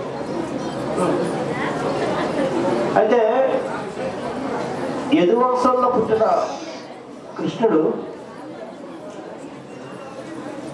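A man speaks with feeling into a microphone, heard through loudspeakers.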